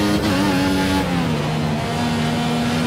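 A racing car engine drops in pitch as the car brakes for a corner.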